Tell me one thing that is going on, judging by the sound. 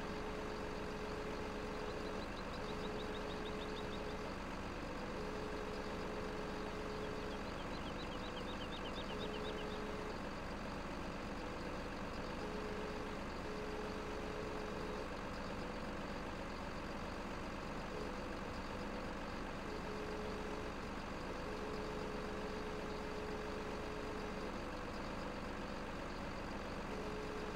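A crane's hydraulic motor whines steadily as its arm moves.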